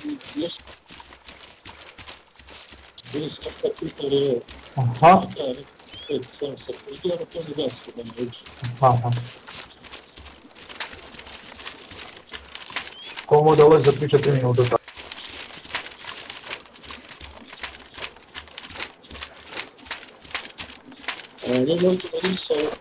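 Footsteps tread steadily through grass.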